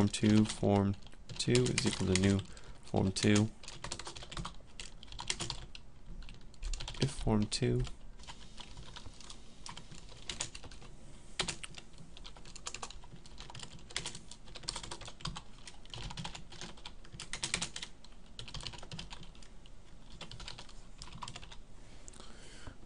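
Keys clatter on a keyboard in quick bursts of typing.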